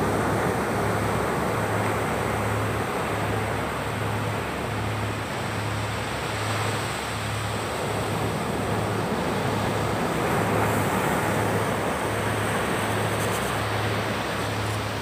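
Small waves break and wash gently up onto a beach.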